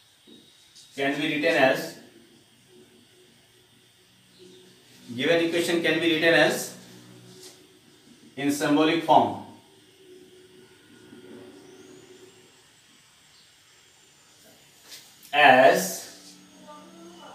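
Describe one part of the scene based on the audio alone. A man speaks calmly and clearly, explaining in short phrases.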